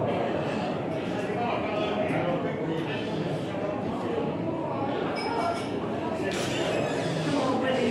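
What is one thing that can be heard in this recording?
Footsteps climb a staircase.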